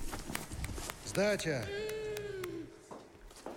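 A young boy laughs softly.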